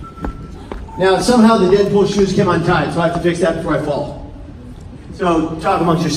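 A man speaks loudly and energetically through a microphone and loudspeakers.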